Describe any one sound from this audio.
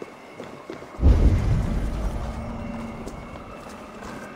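A deep magical boom bursts and rumbles away.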